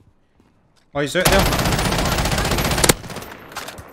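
A rifle fires a long rapid burst.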